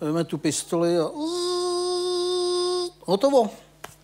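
A man sings a long held note.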